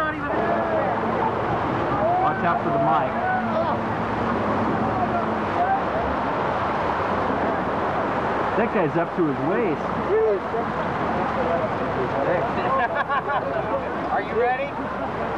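Water churns and splashes around a raft.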